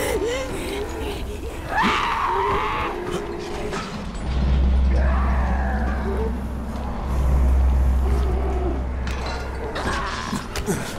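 A bowstring creaks as it is drawn back.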